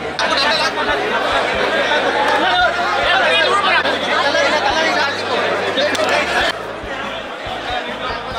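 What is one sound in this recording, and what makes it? A crowd of men talks and shouts excitedly close by.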